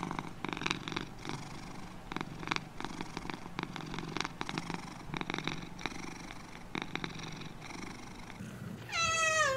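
A cat licks its fur with soft wet clicks.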